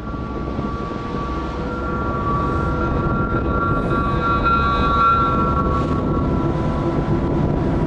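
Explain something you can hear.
A locomotive rumbles as it rolls along the track, heard from inside the cab.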